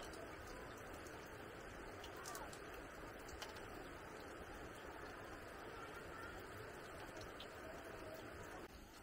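Water sloshes and splashes softly in a basin as hands rinse food.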